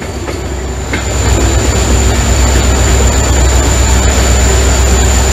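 A train's roar grows louder and echoes inside a tunnel.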